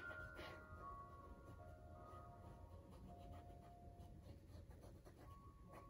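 A paintbrush strokes softly across canvas.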